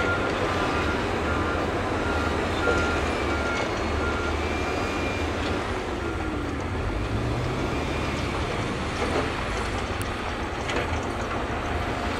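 A bulldozer's diesel engine rumbles steadily as it pushes earth.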